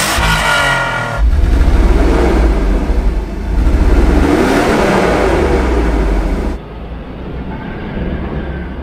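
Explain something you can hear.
A car engine idles with a deep exhaust rumble.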